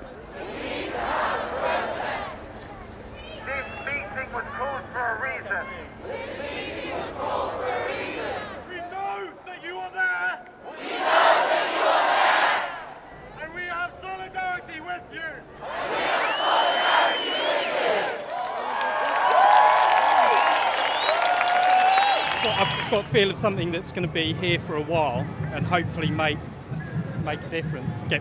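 A large crowd chants back in unison.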